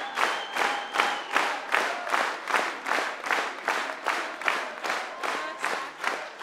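A large audience claps in steady unison, close by.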